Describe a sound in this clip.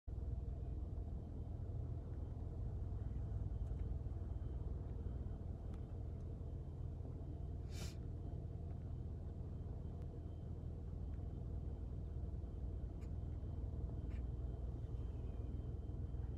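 A car's engine hums low and steady from inside the cabin.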